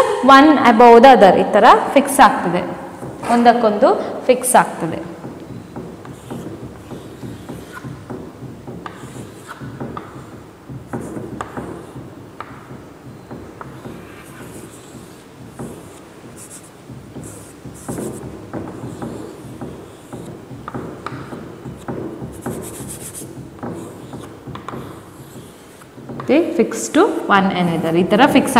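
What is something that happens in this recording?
A young woman speaks clearly and with animation close to a microphone.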